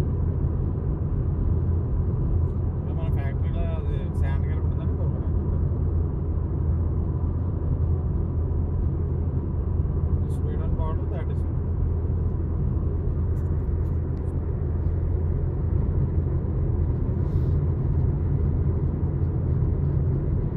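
A car's engine hums and its tyres roar steadily on the road, heard from inside the car.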